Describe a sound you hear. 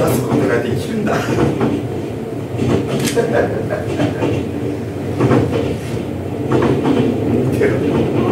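A man speaks with expression close by, in a room with a slight echo.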